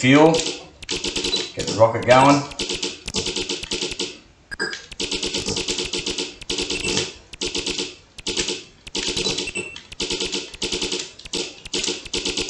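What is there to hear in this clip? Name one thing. Rapid buzzing laser shots from a retro video game fire in short bursts.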